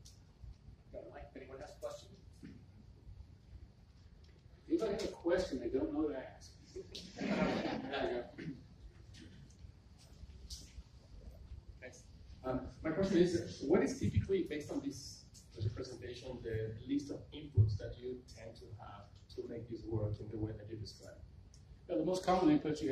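A middle-aged man speaks calmly through a clip-on microphone, in a room with a slight echo.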